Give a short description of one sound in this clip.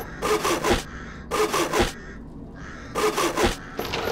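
A hand saw cuts through wood in quick strokes.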